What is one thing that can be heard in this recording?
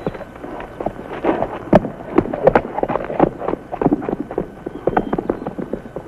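Horse hooves clatter on hard ground as a horse gallops off.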